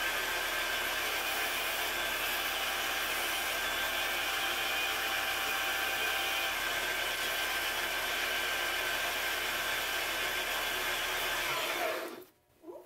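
A lathe motor whirs steadily.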